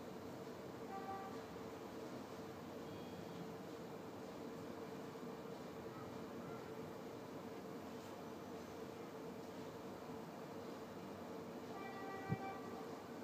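A touch switch panel gives short soft beeps as it is tapped.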